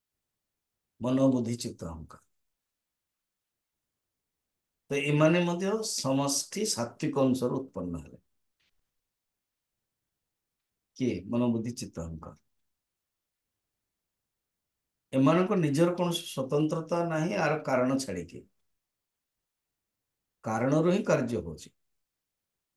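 An elderly man speaks calmly in short phrases into a close microphone, with pauses between.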